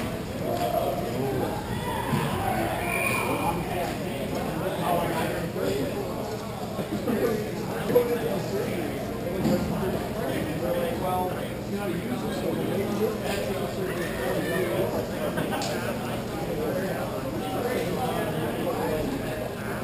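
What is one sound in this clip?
Young players call out, echoing in a large hall.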